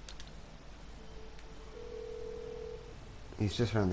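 A phone rings with a steady electronic tone.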